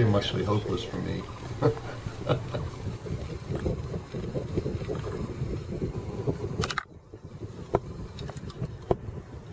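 Water laps against a boat.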